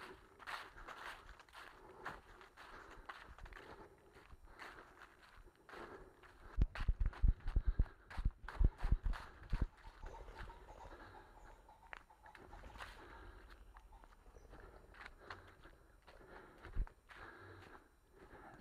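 Footsteps crunch through dry fallen leaves at a steady walking pace.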